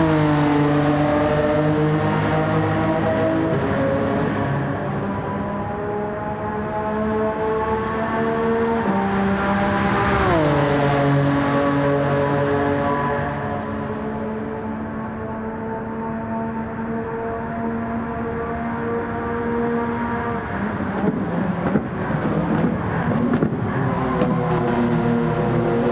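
A race car engine roars at high revs.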